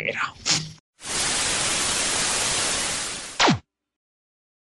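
Television static hisses loudly and then cuts off.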